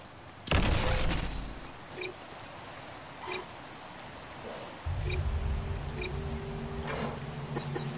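Heavy metal footsteps of a giant robot thud nearby.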